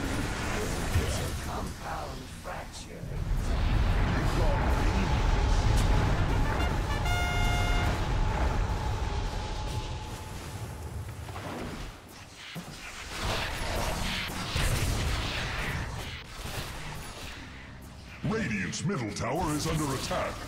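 Fantasy game combat sounds crackle and blast with spells and strikes.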